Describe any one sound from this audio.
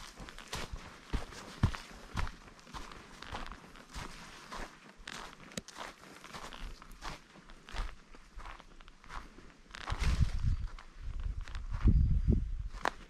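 Footsteps crunch on a dry dirt trail.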